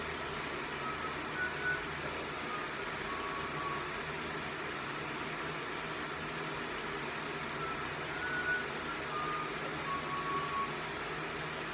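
A man speaks faintly through a small loudspeaker.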